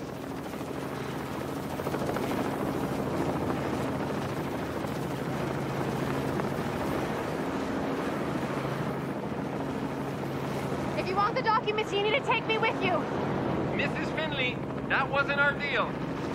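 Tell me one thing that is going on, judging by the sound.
A helicopter engine drones steadily overhead.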